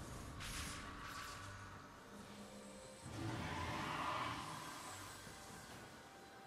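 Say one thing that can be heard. Soft game sound effects whoosh and shimmer.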